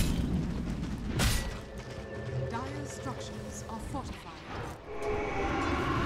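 Spell and weapon effects from a fantasy battle game burst and clash.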